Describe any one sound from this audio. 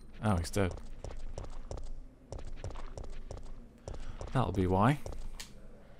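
Footsteps tap on stone pavement.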